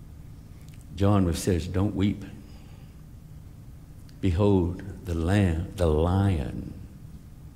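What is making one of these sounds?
A middle-aged man speaks with animation through a microphone, in short bursts.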